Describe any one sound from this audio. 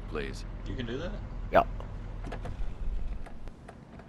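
A car door opens with a click.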